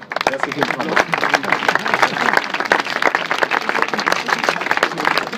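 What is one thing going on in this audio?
A crowd applauds with many hands clapping throughout.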